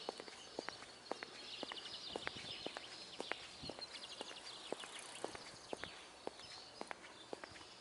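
Footsteps tap steadily on a hard path.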